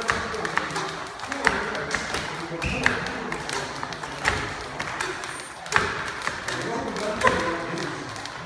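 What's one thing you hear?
Gloved punches smack against a padded hand.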